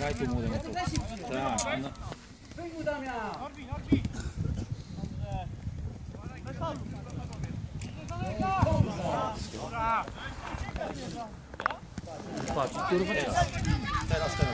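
Players shout to each other across an open field outdoors.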